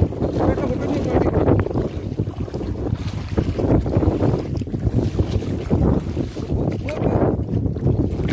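A large fish thrashes and splashes in shallow water.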